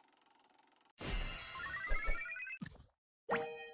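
Coins jingle with a bright, rising chime.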